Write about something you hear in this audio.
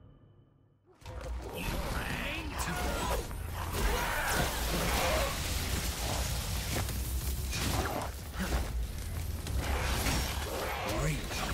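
Electric zaps and blows crash and crackle loudly in a fight.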